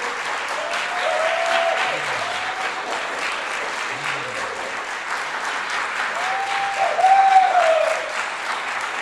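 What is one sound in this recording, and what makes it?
Audience members cheer and whoop.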